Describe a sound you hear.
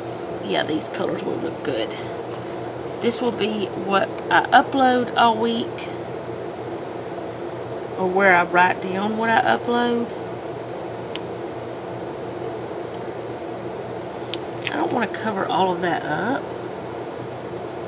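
A sticker sheet crinkles softly as stickers are peeled off.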